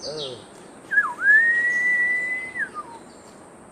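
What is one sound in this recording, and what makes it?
A man blows a high, steady whistle call.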